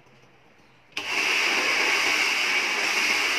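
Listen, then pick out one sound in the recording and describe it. A hair dryer blows with a loud, steady whoosh.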